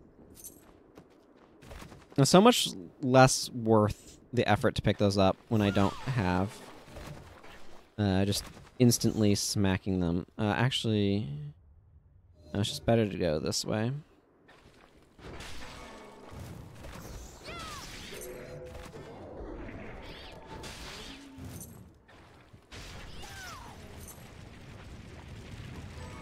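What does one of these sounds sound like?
Sword slashes and magic blasts crash repeatedly.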